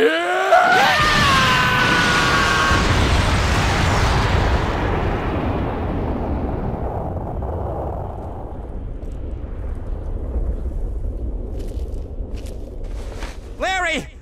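A huge explosion booms and rumbles away.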